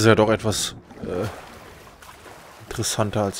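Water splashes loudly as someone surfaces from it.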